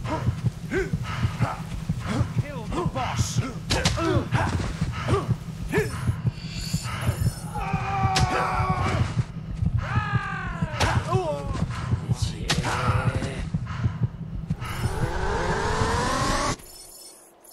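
Swords clash and strike repeatedly in a fight.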